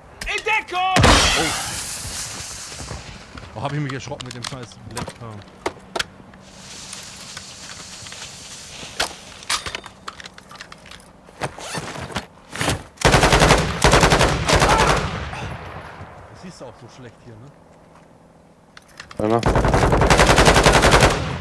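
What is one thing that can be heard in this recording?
An automatic rifle fires rapid, loud bursts.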